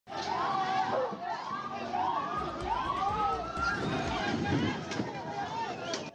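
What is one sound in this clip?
A crowd of men and women shout and scream in distress nearby, outdoors.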